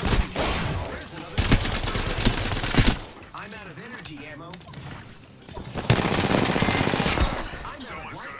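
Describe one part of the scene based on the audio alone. Gunfire from a game rattles in rapid bursts.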